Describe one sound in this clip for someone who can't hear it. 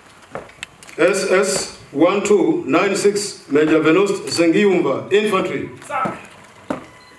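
A man calls out loud commands in a large echoing hall.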